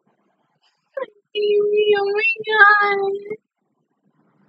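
A young woman squeals and laughs with excitement close to a microphone.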